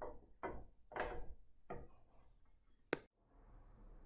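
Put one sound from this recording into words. A glass container knocks and clinks against a hard tabletop.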